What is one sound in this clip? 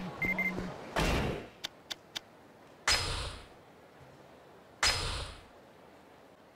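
Menu chimes and clicks sound.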